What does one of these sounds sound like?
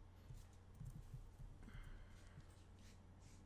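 A man talks casually into a headset microphone.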